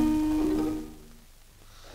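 Music plays briefly.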